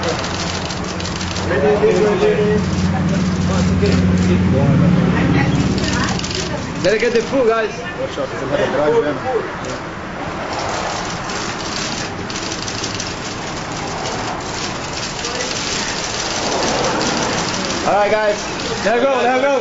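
A crowd of men shout and call out close by.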